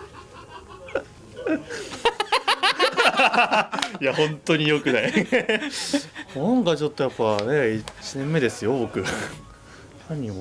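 Several young men talk and laugh together nearby.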